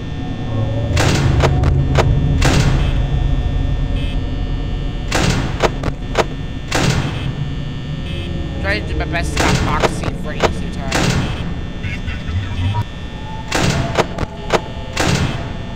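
A heavy metal door slams shut and slides open again and again.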